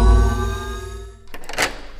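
A key clicks into a padlock.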